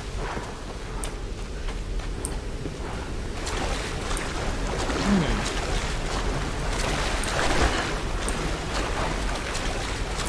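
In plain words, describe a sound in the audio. A waterfall rushes steadily.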